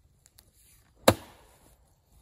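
An axe strikes wood with a sharp thud outdoors.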